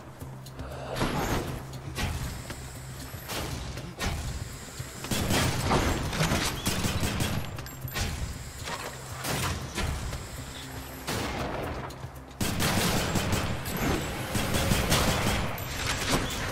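Blades slash and hits thud in quick bursts.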